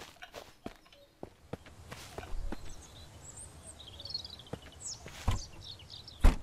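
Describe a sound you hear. Footsteps crunch on a forest floor.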